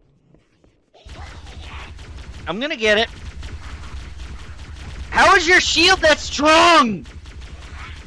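A plasma pistol fires rapid shots.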